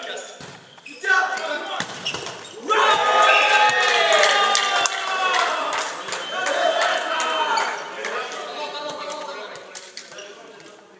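Young men shout and call out loudly in a large echoing hall.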